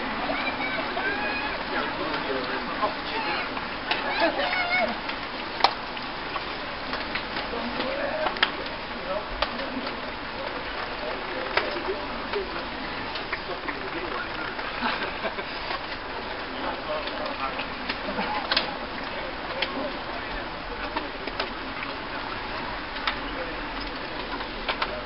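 Bicycle tyres hiss and rattle over a wet road.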